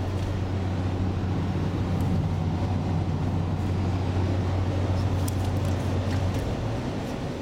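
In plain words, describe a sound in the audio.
Traffic rushes past outside the car.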